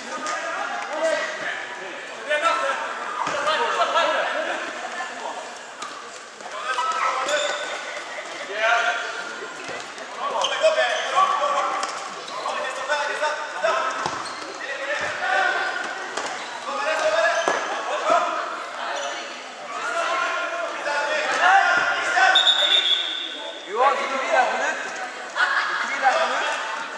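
Players' shoes squeak on the floor.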